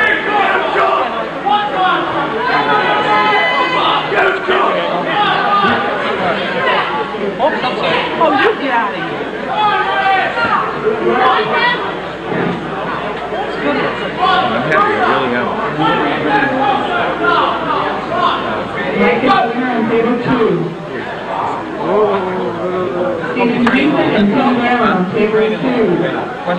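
A crowd of men shouts and cheers excitedly nearby.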